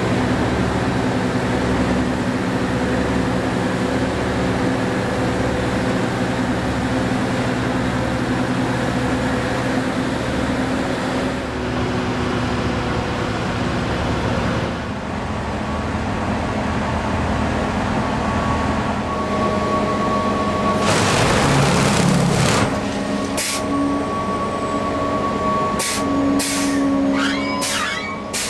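A heavy diesel rail machine hums and rumbles close by.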